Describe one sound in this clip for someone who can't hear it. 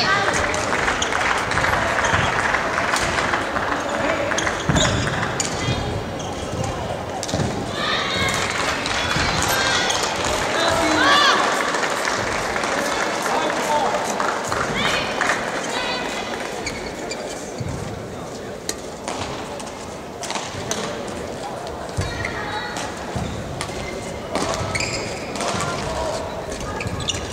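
A shuttlecock is struck with a racket in a large echoing hall.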